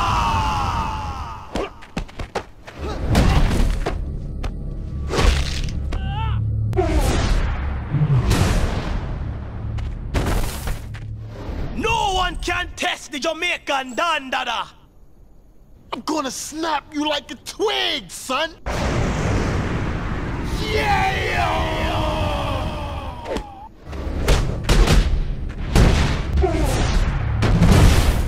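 Punches and body slams land with heavy thuds.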